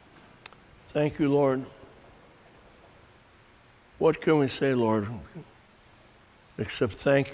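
An elderly man sings slowly in short phrases nearby.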